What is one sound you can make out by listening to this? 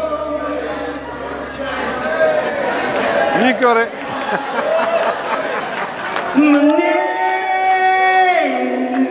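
A man sings into a microphone over loudspeakers in a large hall.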